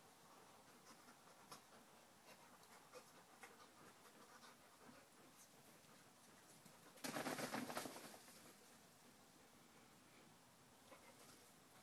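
A dog rolls and rustles on the grass outdoors.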